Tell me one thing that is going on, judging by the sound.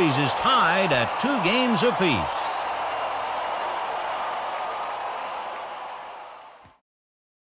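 A large crowd cheers and roars, then fades away.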